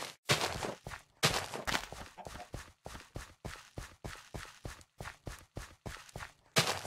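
Footsteps tread quickly over soft soil.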